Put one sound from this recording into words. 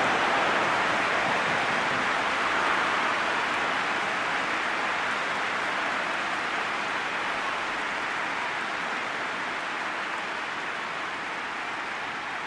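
A large crowd roars steadily in a stadium and slowly fades.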